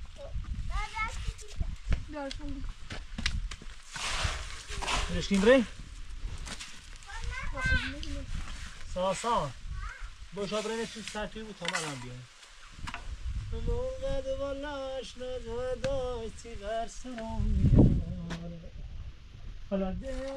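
A trowel scrapes and taps against stone and mortar.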